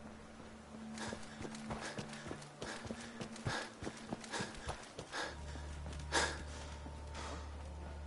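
Footsteps crunch over rubble at a steady walking pace.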